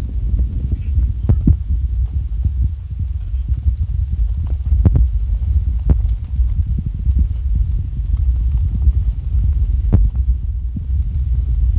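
Tyres rumble and jolt over a rough, stony road.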